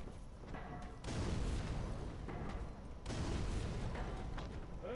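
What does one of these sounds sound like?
A sword slashes and strikes flesh with a wet thud.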